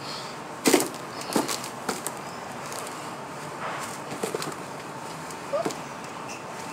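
A blanket rustles as it is pulled over someone.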